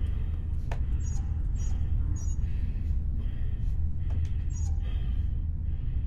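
A metal valve wheel creaks as it turns.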